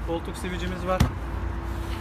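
A hand pats a padded seat with a soft thump.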